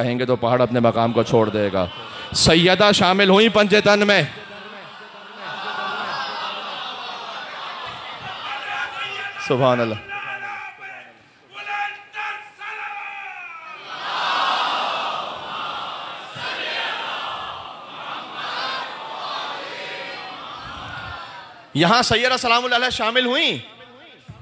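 A man speaks with animation through a microphone, heard over loudspeakers.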